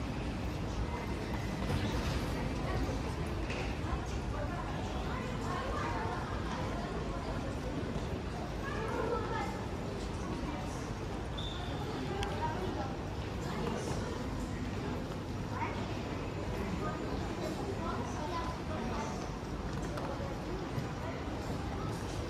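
Suitcase wheels roll across a hard floor.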